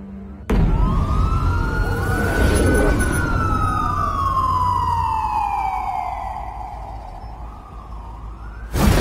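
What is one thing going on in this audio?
A police siren wails and slowly falls in pitch.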